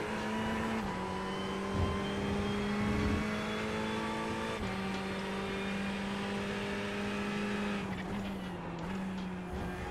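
A race car engine drones steadily at high revs, shifting pitch as the car changes gear.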